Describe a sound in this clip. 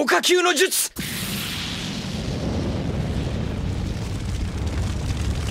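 A fireball roars steadily.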